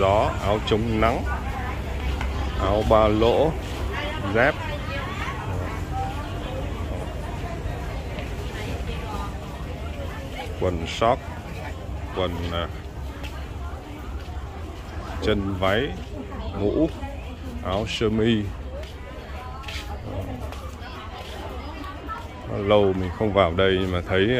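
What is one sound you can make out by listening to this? People chatter faintly in the background.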